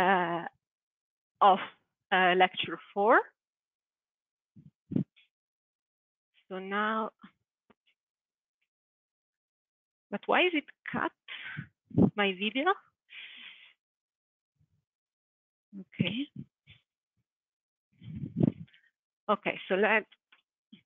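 A woman lectures calmly in short bursts with pauses.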